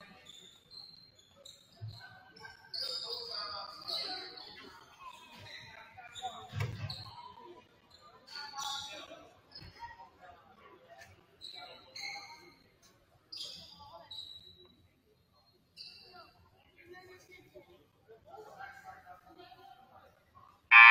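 A crowd of players and spectators chatters and calls out in a large echoing gym.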